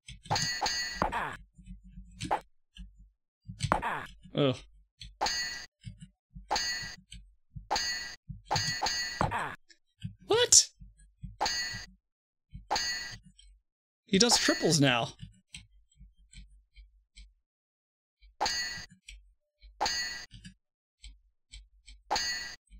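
Swords clash with sharp metallic rings.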